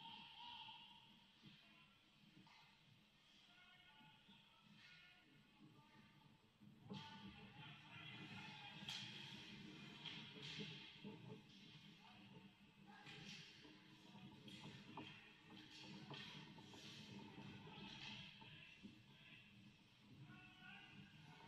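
Ice skates scrape and carve across the ice in a large echoing hall.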